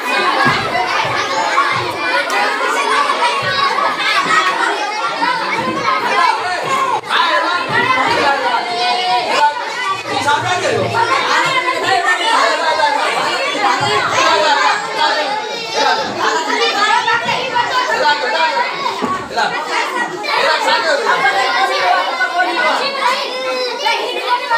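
A large crowd of children chatter and shout excitedly in a room.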